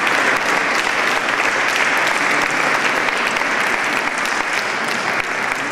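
An audience applauds steadily in a large echoing hall.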